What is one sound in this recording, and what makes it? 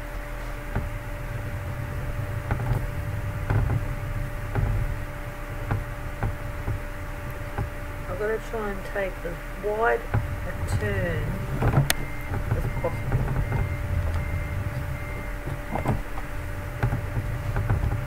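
A truck engine rumbles steadily as the truck drives slowly.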